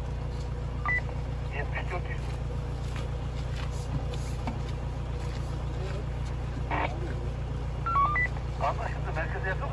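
Footsteps walk on a paved path outdoors.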